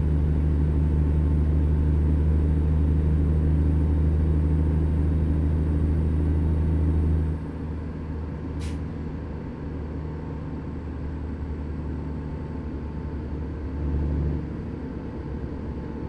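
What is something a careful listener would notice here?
A truck engine rumbles steadily, dropping to a softer drone partway through.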